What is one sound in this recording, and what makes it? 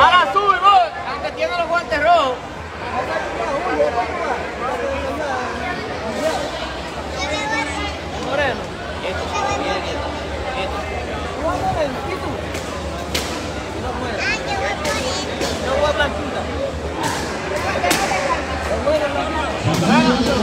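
A crowd of men talks and calls out in a large echoing hall.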